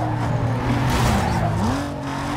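A car scrapes and grinds against another car.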